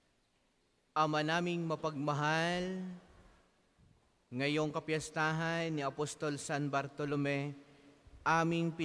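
A man speaks slowly into a microphone, heard through a loudspeaker.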